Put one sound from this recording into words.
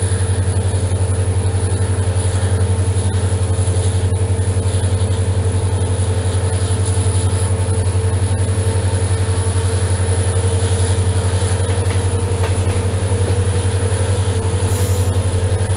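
A diesel locomotive engine throbs loudly and steadily close by.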